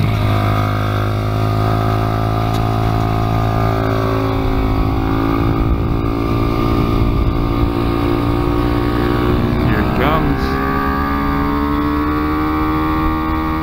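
A motorcycle engine drones loudly up close, its pitch rising and falling as it speeds up and slows.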